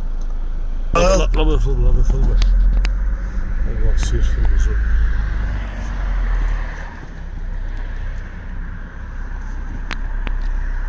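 A vehicle engine rumbles low from inside the cab.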